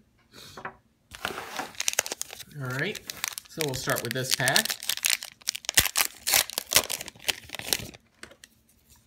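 A foil card pack crinkles and rustles in hands.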